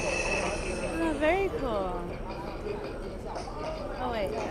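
Electronic game sounds chime and swoop from a computer.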